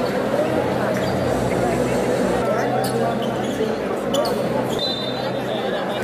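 A large crowd chatters and cheers in an echoing gym.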